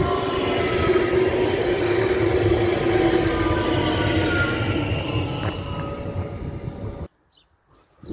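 A train rumbles past close by and fades away.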